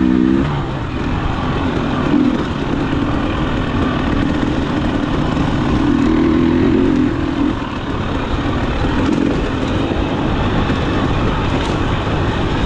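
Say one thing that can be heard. Another dirt bike engine buzzes ahead, rising and falling.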